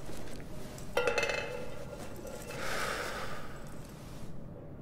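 A cloth bandage rustles as it is unrolled.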